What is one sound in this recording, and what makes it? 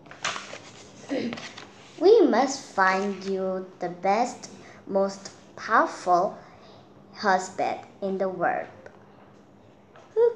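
A young girl speaks calmly, close to the microphone.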